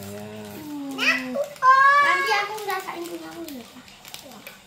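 A little girl laughs excitedly.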